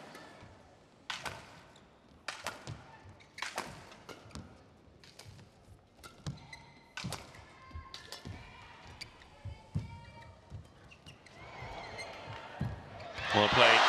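A shuttlecock is struck sharply back and forth with rackets in a large echoing hall.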